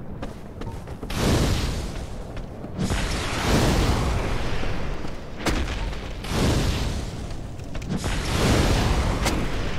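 Fireballs whoosh and burst with a roar.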